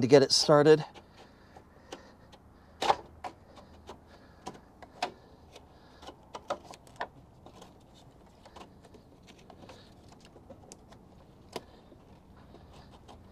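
Small plastic and metal parts click and knock as hands work in a car's engine bay.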